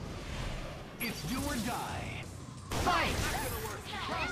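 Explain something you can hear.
Blows land with sharp impacts in a fight.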